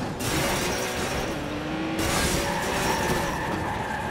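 A car crashes through a metal fence with a loud bang.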